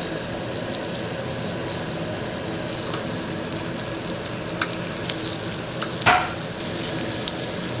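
Meat sizzles steadily on a hot grill.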